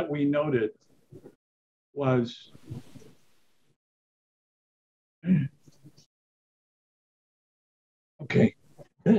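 An elderly man speaks calmly in short phrases over an online call.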